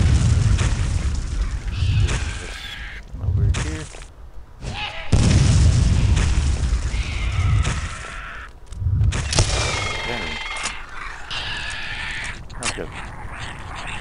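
Flying skulls shriek and wail.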